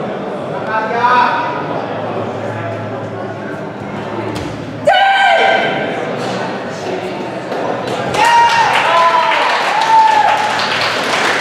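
A young martial artist shouts sharply.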